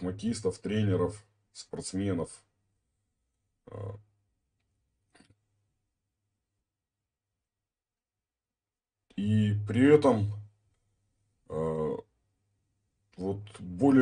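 A middle-aged man speaks calmly into a nearby microphone, with pauses.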